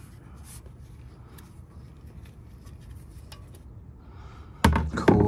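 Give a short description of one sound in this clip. A small metal clip clicks and scrapes against a hose fitting.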